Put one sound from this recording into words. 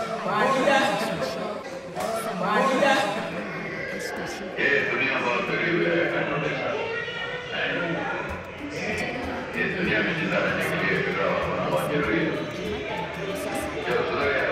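Young men talk with animation close by.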